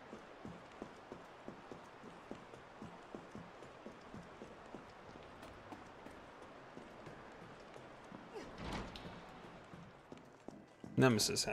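Footsteps echo steadily along a hard floor.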